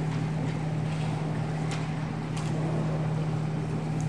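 Footsteps pad along a springy diving board in a large echoing hall.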